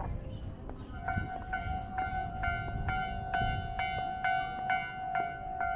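A railway crossing bell rings in a fast, steady rhythm.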